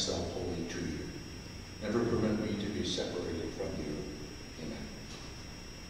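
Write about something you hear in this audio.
An older man speaks calmly into a microphone in an echoing room.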